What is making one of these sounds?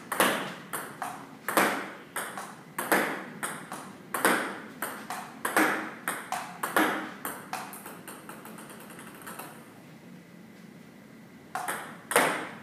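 A ping-pong ball clicks rapidly back and forth off a table and bats.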